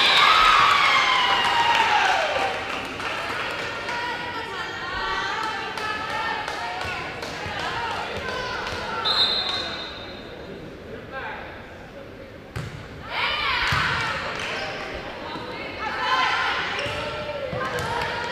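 A volleyball thumps as players hit it.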